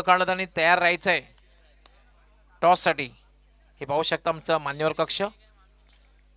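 A man announces loudly and with animation through a loudspeaker.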